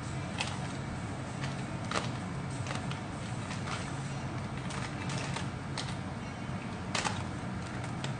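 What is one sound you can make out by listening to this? A plastic box clicks and rattles as hands open it.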